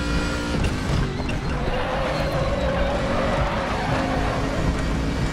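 A racing car engine drops in pitch as the driver brakes and shifts down.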